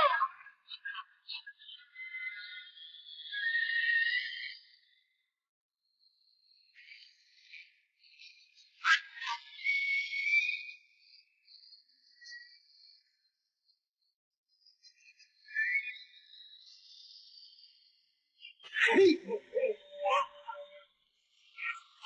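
A young woman screams in fear.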